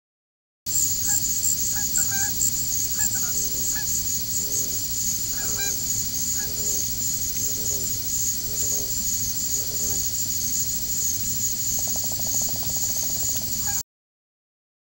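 Ducks call softly on the water.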